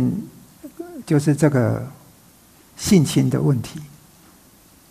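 An older man speaks calmly through a headset microphone.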